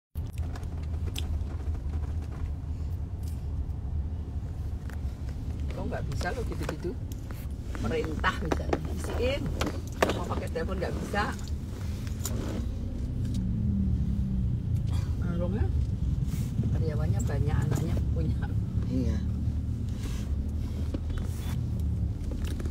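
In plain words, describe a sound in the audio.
A car engine hums steadily with road rumble.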